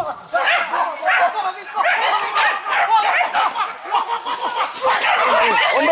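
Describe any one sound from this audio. Dogs bark excitedly close by.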